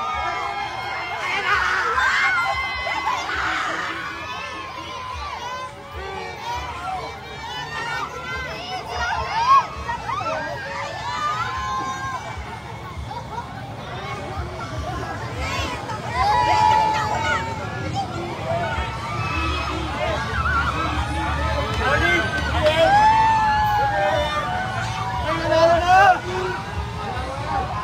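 A large outdoor crowd cheers and shouts excitedly nearby.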